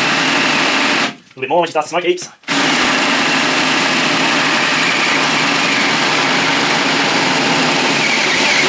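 A drill press whirs steadily as it bores into metal.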